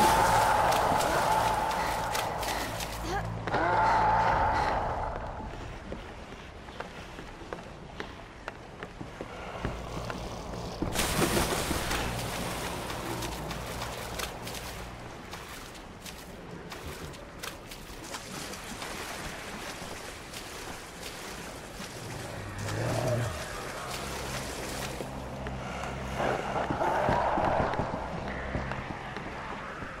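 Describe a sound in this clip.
Footsteps run quickly over wooden boards.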